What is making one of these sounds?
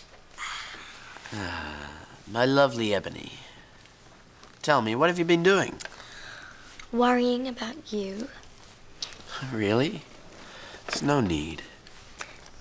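A young man speaks in a low, strained voice close by.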